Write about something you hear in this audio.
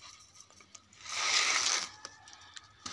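Grain pours into a dish.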